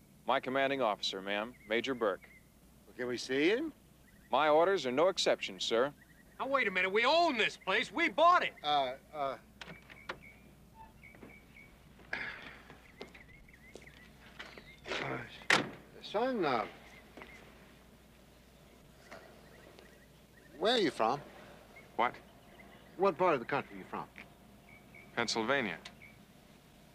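A young man speaks firmly and clearly.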